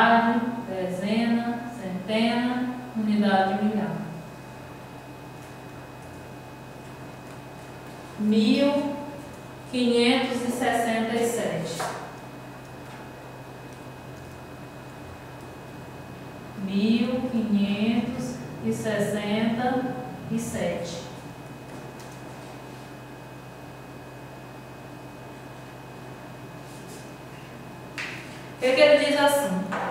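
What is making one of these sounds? A young woman explains calmly and clearly, close by.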